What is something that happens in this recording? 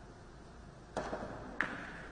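A cue strikes a billiard ball sharply.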